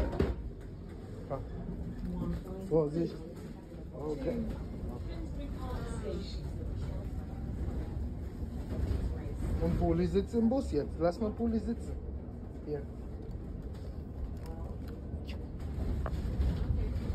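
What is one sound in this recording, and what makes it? A train rumbles low and steady.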